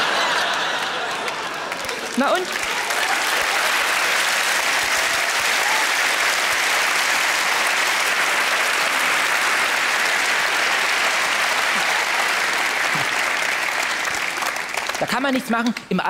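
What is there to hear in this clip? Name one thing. A large audience laughs and applauds in a big hall.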